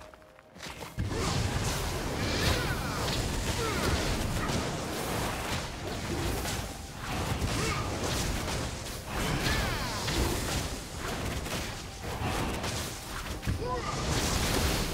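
Loud game spell blasts and impacts crash in quick succession.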